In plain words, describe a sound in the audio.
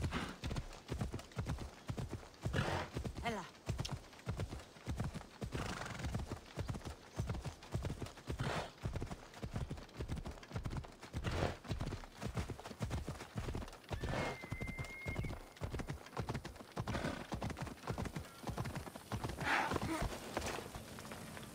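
A horse's hooves clop at a steady walk.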